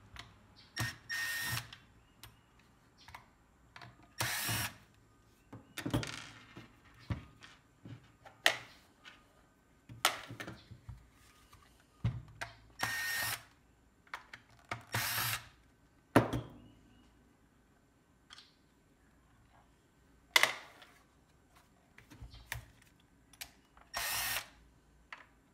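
A cordless screwdriver whirs in short bursts.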